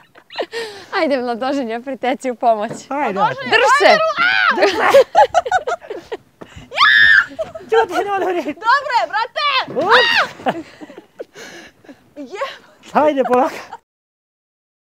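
A woman talks and laughs nearby.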